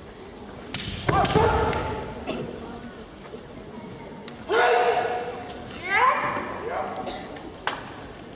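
Fencers shout loud battle cries.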